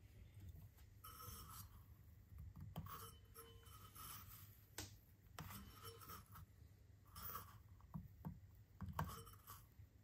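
A metal funnel scrapes and rubs as a hand twists it on a metal grinder.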